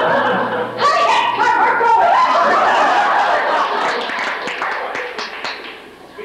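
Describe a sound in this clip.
Young women talk with animation, heard from a distance in an echoing hall.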